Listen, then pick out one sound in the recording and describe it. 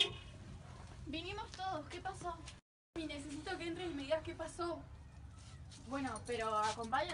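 Young women talk nearby with animation.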